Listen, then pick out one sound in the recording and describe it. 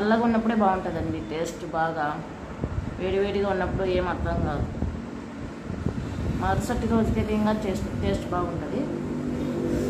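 A woman talks close by in a calm, chatty voice.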